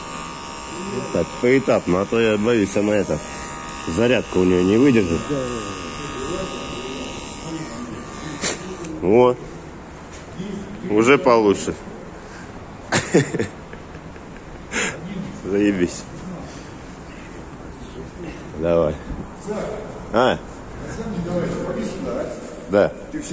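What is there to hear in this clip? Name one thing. A middle-aged man speaks close by in short bursts.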